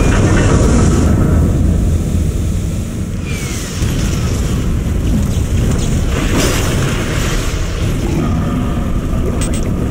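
Jet thrusters hiss and roar steadily.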